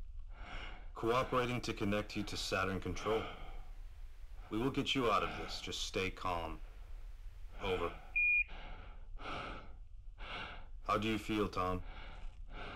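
A man speaks calmly over a radio.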